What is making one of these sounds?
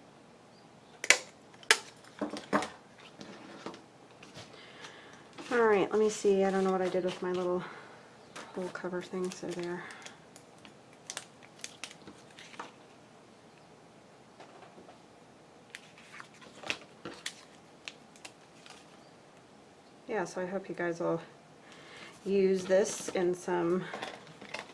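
Paper and card rustle and tap as they are handled.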